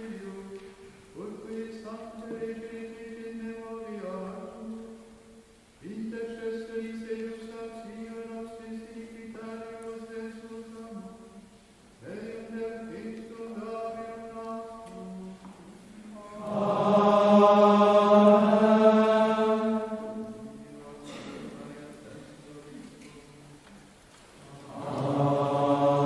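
A choir of men sings a slow chant in a large echoing hall.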